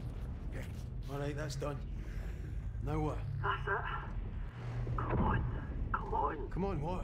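A young man talks quietly close to a microphone.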